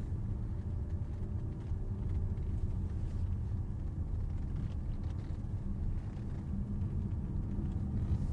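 Tyres roll with a low rumble over the road.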